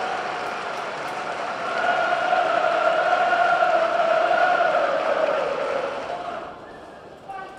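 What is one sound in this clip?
A large stadium crowd cheers and chants loudly, then dies down.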